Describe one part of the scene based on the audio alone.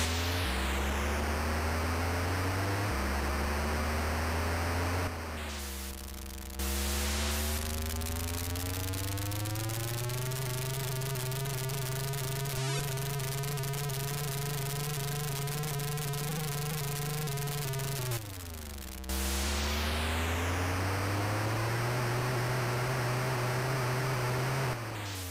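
A video game car engine buzzes and rises and falls in pitch.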